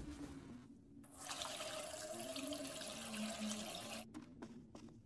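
Water runs from a tap into a glass.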